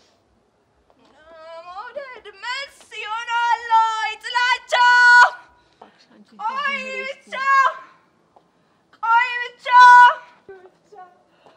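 A young woman sings out in a high, clear voice.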